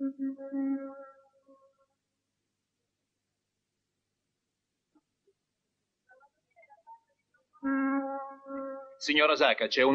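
A ship's horn blows long and loud.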